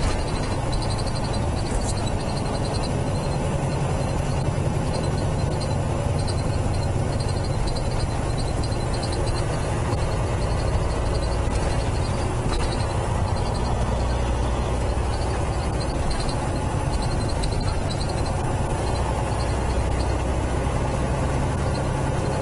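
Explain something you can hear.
A truck's diesel engine rumbles steadily inside the cab.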